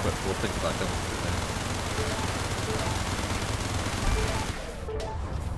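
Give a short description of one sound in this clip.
Laser shots fire in quick bursts in a video game.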